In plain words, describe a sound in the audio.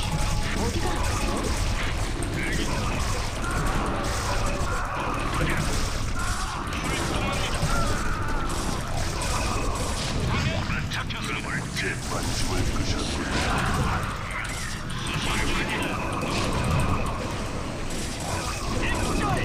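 Rapid gunfire rattles in a battle.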